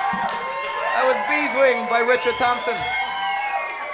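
A man sings into a microphone with a lively voice.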